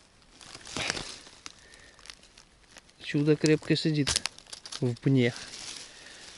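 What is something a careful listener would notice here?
A mushroom stem snaps as it is pulled from the ground.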